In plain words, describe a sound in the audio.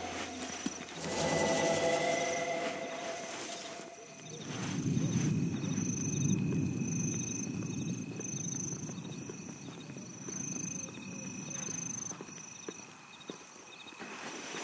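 Footsteps crunch softly on sand and gravel.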